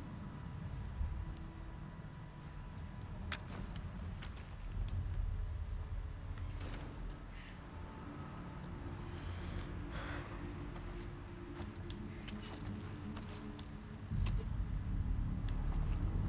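Gear rustles and clinks as someone moves while crouching.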